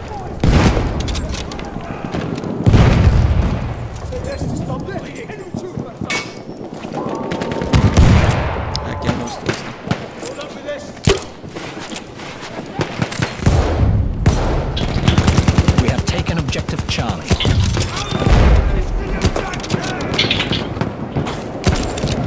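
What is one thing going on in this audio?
Distant gunfire crackles in rapid bursts.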